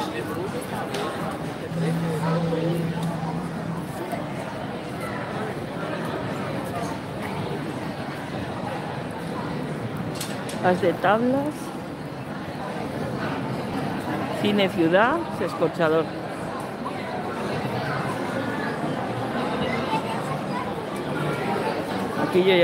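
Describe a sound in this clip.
A crowd of people chatters at a distance outdoors.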